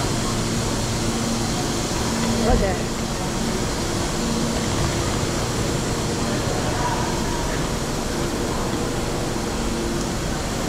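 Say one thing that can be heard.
Suitcase wheels roll over a hard floor.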